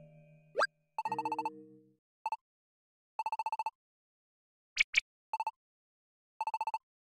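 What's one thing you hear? Rapid electronic blips tick in quick bursts.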